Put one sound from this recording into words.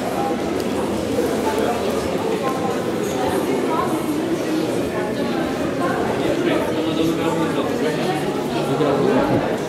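Several men and women talk at once in a large echoing hall.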